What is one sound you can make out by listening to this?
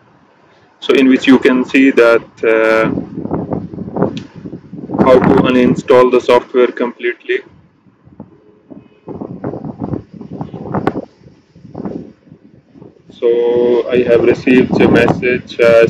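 A man speaks calmly and clearly into a nearby microphone.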